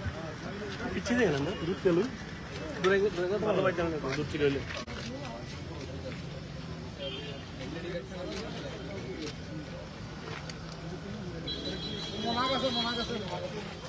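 A man speaks close by, with animation.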